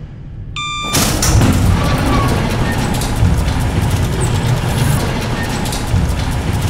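A metal shutter rattles and rumbles as it rolls up.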